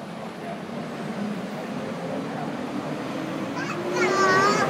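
A bus pulls away with a rising engine whine.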